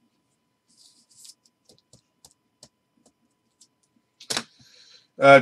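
A plastic card holder clicks and rustles in someone's hands.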